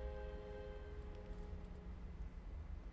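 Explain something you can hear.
A violin plays a sustained note that rings out and fades.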